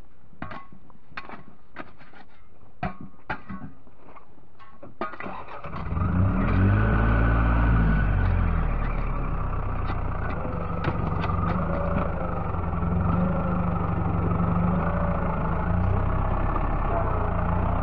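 A shovel scrapes and digs into dry soil.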